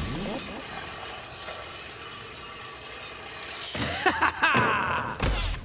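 Skateboard wheels roll along a smooth ramp.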